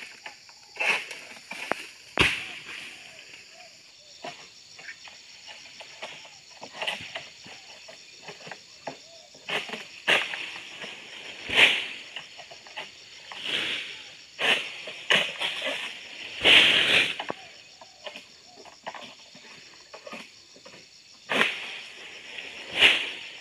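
A long pole knocks and scrapes against palm fronds overhead.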